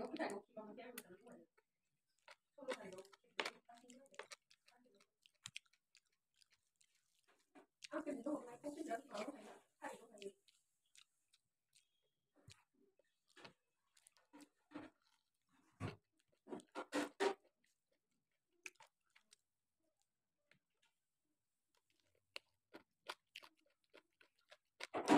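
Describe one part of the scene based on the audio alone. A young woman chews food with wet, smacking sounds.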